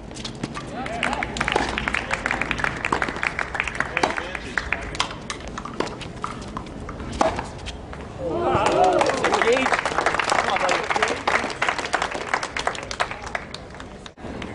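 A crowd of spectators applauds and cheers outdoors.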